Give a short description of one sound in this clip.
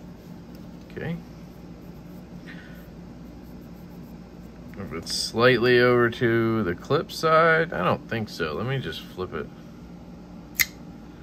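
A folding knife clicks.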